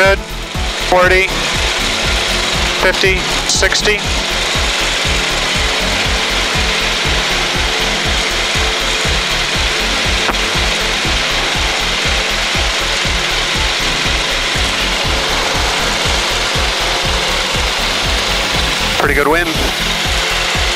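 A small propeller aircraft engine drones loudly and steadily.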